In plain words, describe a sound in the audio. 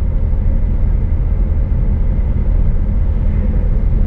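A heavy truck passes by in the other direction.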